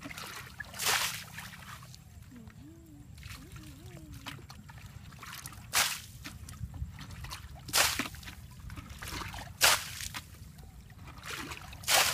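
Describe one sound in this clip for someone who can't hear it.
Muddy water splashes as a boy scoops it out with a bucket and tips it away.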